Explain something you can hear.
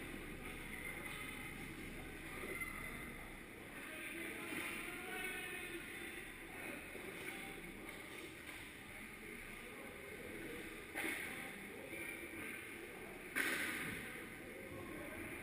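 Skates scrape and hiss across ice in a large echoing hall.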